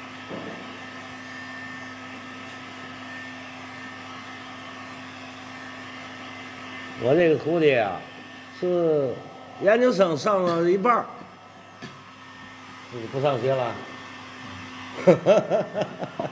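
A heat gun blows with a steady whirring hiss.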